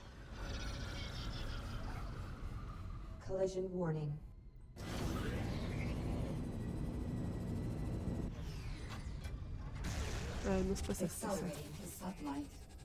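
A spaceship engine hums with a steady low roar.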